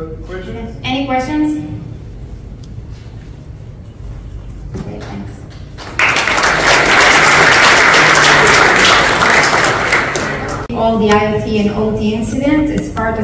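A young woman speaks calmly into a microphone in a large room.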